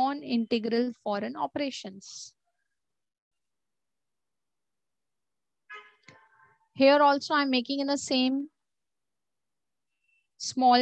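A young woman speaks calmly over an online call, in short phrases with pauses.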